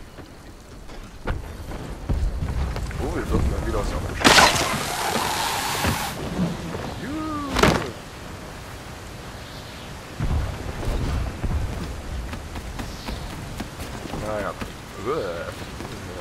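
Wind gusts loudly outdoors.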